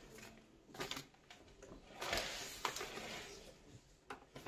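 Wrapping paper rustles and crinkles close by.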